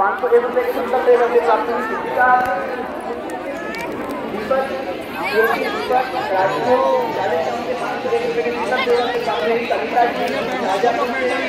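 A large crowd of women and men chatter and shout all around, outdoors.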